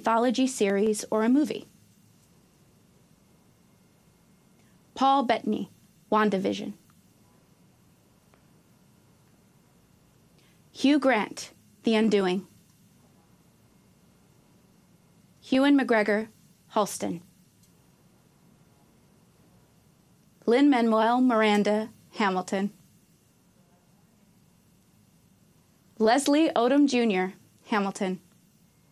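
A woman reads out names calmly through a microphone, with pauses between them.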